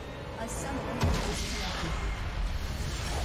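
A loud game explosion booms.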